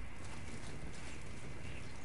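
A fire crackles in a brazier.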